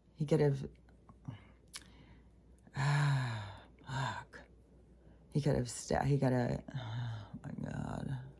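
A middle-aged woman speaks calmly and slowly, close to a microphone, with pauses.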